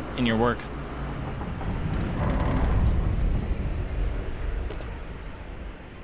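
A heavy stone door grinds open.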